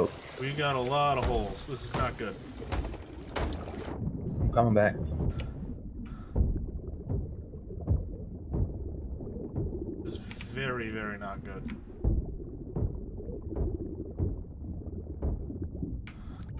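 Water gushes through holes in a wooden hull.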